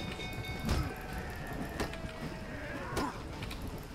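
Steel swords clash and strike in a fight.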